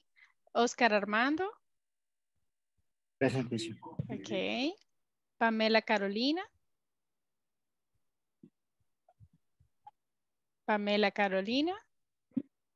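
A woman speaks clearly over an online call, in short phrases with pauses.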